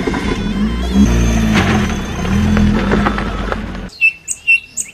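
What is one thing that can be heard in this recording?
A car engine revs.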